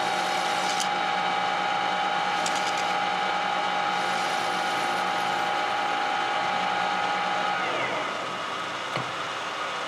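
A metal lathe whirs, then spins down and stops.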